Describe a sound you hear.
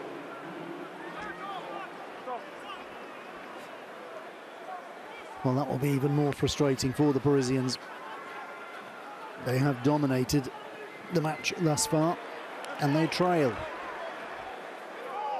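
A crowd murmurs faintly in an open stadium.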